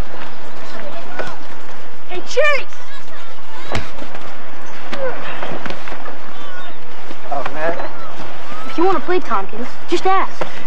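Teenage boys shout and call out to each other outdoors.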